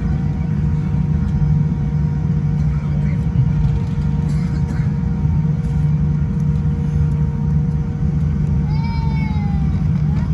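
Jet engines roar steadily, heard from inside an airliner cabin.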